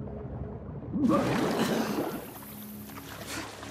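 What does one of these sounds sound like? Water splashes loudly as a swimmer surfaces.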